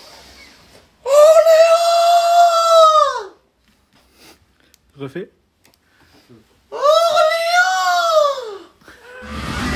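A young man sings loudly in a high, drawn-out voice.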